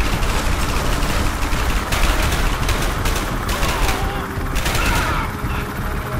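A rifle fires in rapid bursts of sharp shots.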